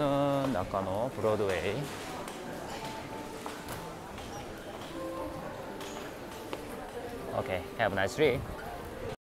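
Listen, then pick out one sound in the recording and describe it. Footsteps of many people shuffle along a hard floor.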